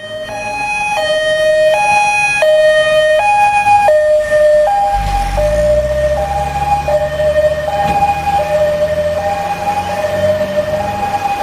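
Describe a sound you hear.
A fire engine's two-tone siren blares close by.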